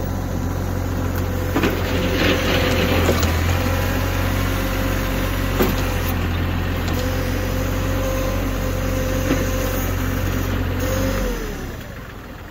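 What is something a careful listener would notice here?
A tractor engine rumbles steadily close by, then winds down.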